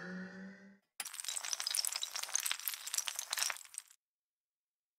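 Dominoes topple and clatter against each other.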